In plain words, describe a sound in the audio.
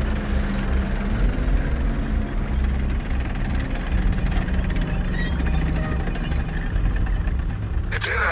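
Heavy machinery grinds and whirs.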